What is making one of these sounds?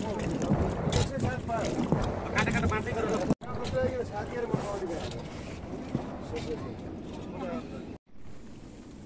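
Milk sloshes and splashes as a plunger churns it in a wooden churn.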